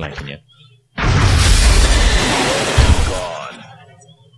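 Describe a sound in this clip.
A plasma weapon blast explodes with a loud roar.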